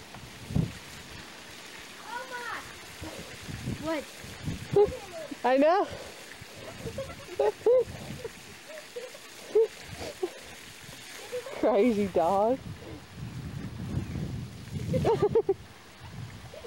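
A dog snaps and splashes at a stream of water.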